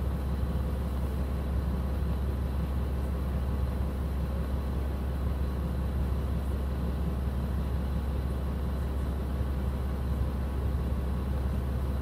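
A diesel railcar engine idles, heard from inside the carriage.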